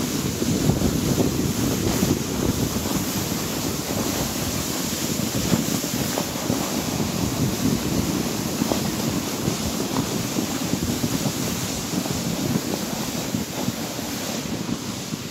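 Footsteps crunch on snow.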